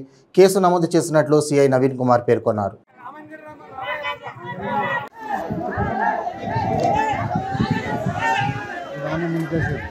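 A crowd of men talk and shout over one another outdoors.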